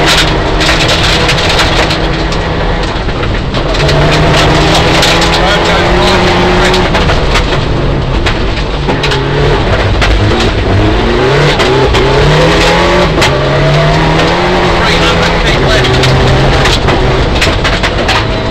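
Gravel and stones rattle against the underside of a car.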